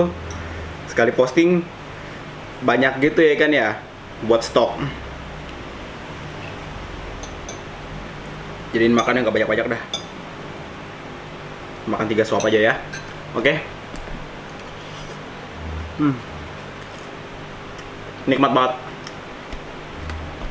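A fork and spoon clink on a plate.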